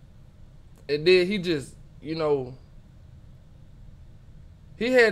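A young man speaks with animation in short bursts, close to a microphone.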